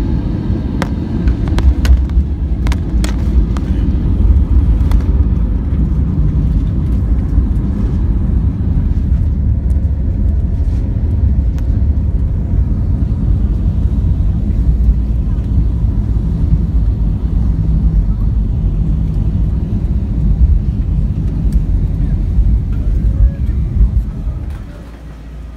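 A jet engine roars loudly.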